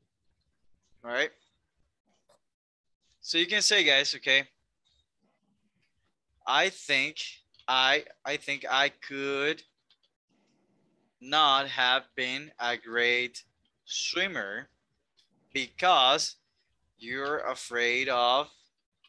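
A man speaks calmly into a microphone, as if over an online call.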